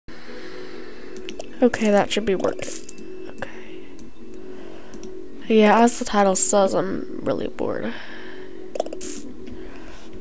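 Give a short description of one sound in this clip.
Coins clink and chime as they are picked up.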